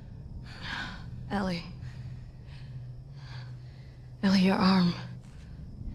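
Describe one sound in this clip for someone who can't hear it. A young girl speaks with concern.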